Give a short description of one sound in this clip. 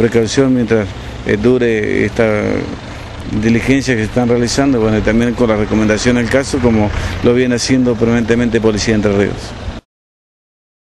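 A middle-aged man speaks steadily into a microphone, close by.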